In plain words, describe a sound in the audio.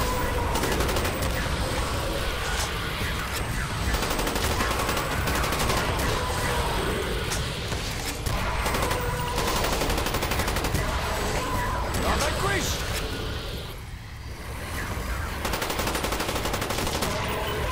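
Rapid gunfire rattles in quick bursts.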